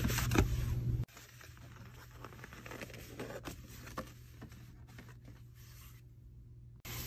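Cardboard creaks and scrapes as it is folded.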